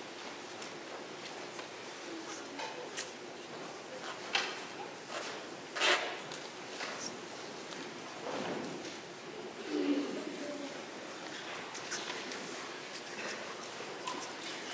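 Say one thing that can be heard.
A mixed youth choir sings in a large hall.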